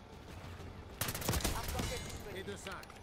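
A rifle fires a quick burst of loud shots.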